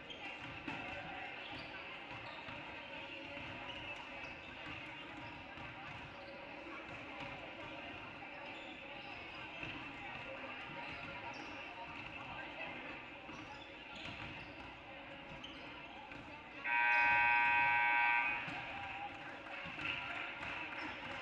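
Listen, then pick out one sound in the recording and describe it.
Sneakers squeak on a hardwood court in a large echoing gym.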